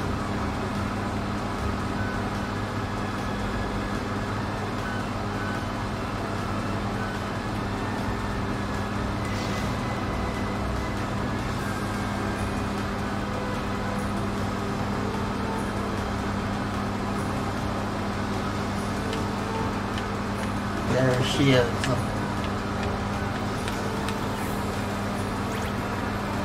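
Video game music and effects play steadily.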